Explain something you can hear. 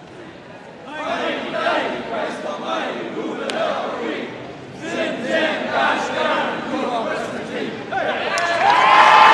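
A group of elderly men talk and laugh together up close.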